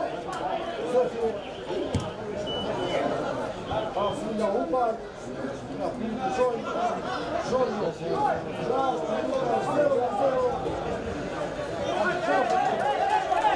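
Men shout to each other across a field.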